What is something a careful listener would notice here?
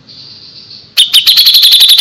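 A small songbird chirps in rapid, loud bursts close by.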